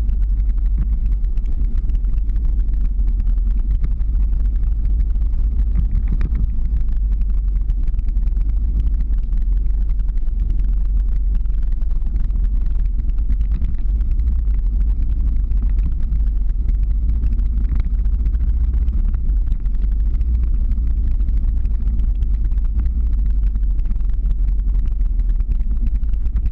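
Wind roars steadily across a microphone outdoors.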